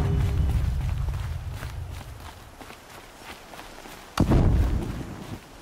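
Footsteps crunch on rocky ground.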